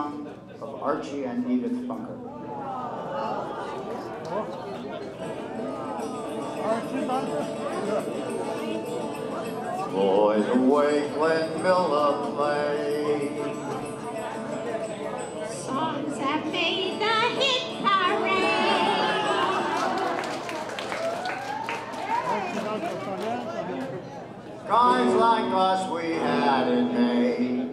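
An acoustic guitar strums through a loudspeaker in a room.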